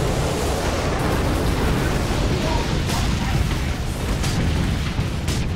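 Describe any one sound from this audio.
Fire crackles and roars steadily.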